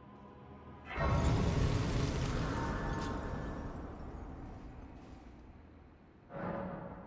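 A bright shimmering chime swells and slowly fades.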